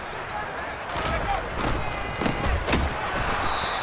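Football players collide in a tackle with dull thuds.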